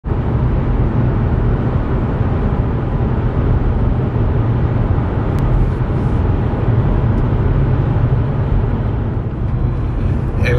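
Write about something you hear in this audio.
A car engine hums steadily as tyres roll over a road.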